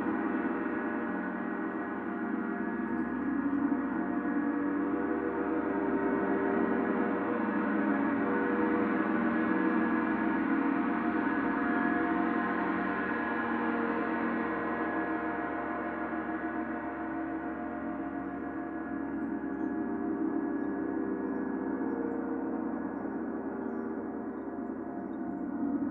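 A large gong hums and shimmers in a long, steady, swelling ring.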